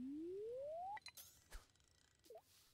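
A fishing line casts with a whoosh.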